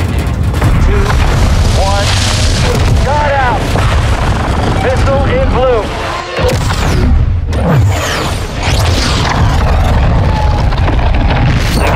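A rocket launches with a deep, thunderous roar.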